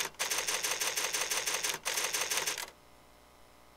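A typewriter clatters rapidly.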